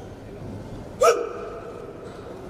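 A man gives a single sharp, loud shout that echoes in a large hall.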